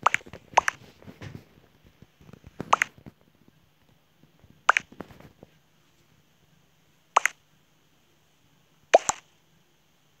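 Short electronic chat blips sound several times.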